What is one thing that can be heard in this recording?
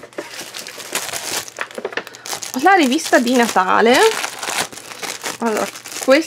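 A plastic packet crinkles as it is handled.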